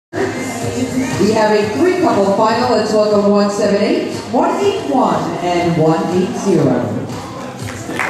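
A man announces over a loudspeaker in a large echoing hall.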